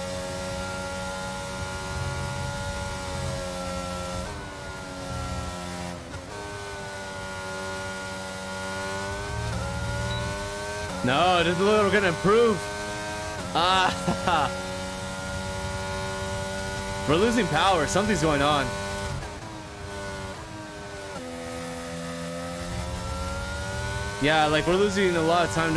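A racing car engine whines steadily, rising and dropping in pitch as it shifts gears.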